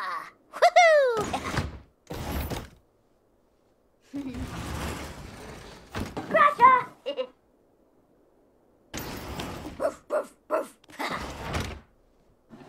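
Wooden wardrobe doors slide open and shut several times.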